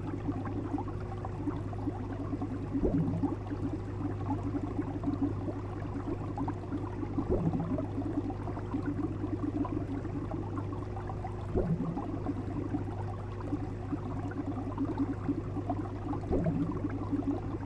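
Water bubbles and gurgles steadily in an aquarium.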